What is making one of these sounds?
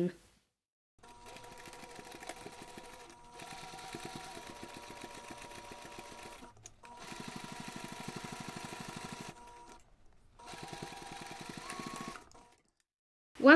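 A sewing machine stitches in quick, steady bursts.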